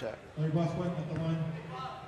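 A basketball bounces on a hard wooden floor.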